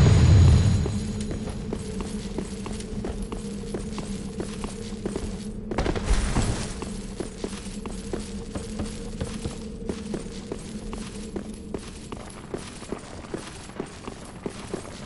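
Armored footsteps clank in a quick, steady rhythm.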